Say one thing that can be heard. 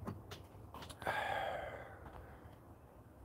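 A man sighs with satisfaction.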